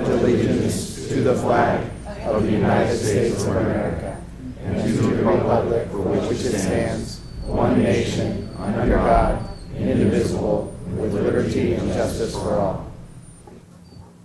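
A large crowd sings together in a big echoing hall.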